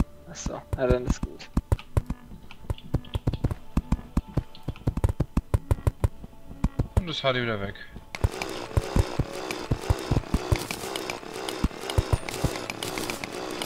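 A pickaxe taps rapidly and repeatedly at stone.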